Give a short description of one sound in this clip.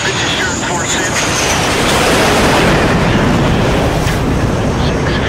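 A jet roars loudly past close by.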